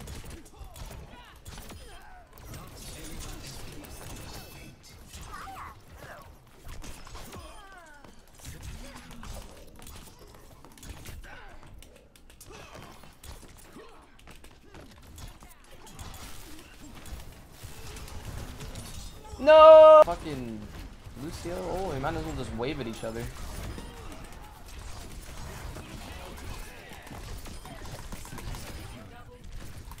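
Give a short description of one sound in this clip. Video game gunshots crack.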